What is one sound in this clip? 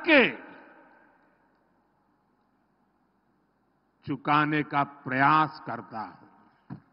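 An elderly man speaks forcefully into a microphone, echoing through loudspeakers.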